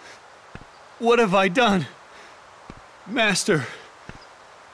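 A young man speaks in a shaken voice.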